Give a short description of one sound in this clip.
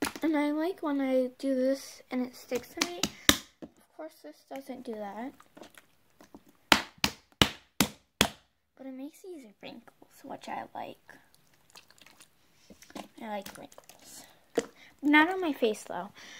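Sticky slime squelches and pops as hands squeeze it.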